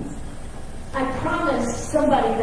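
An elderly man speaks into a microphone at a lectern in a large room.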